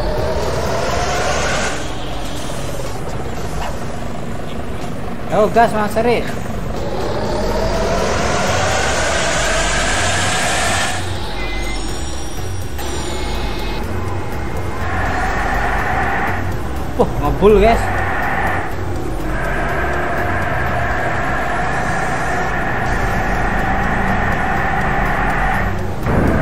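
A bus engine hums and revs up and down.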